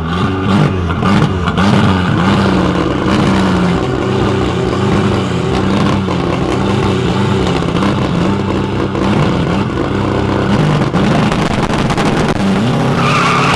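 Two car engines rev hard and loudly in repeated bursts.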